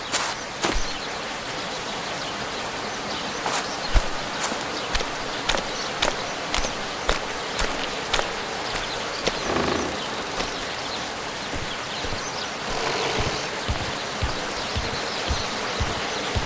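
Footsteps crunch on wet ground.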